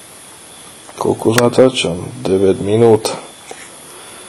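A man speaks quietly and briefly, close by.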